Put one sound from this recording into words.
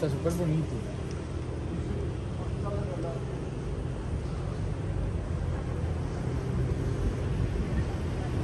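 A car engine hums low as a car rolls slowly past.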